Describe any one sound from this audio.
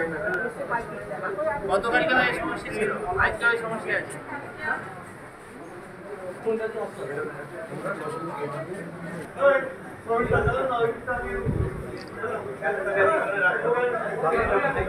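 A crowd of men and women talk over one another nearby, indoors.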